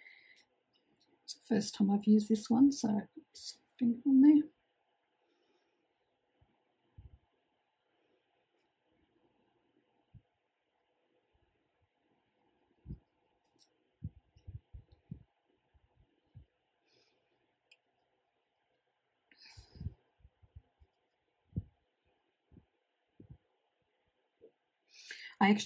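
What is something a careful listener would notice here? A paintbrush brushes softly on paper.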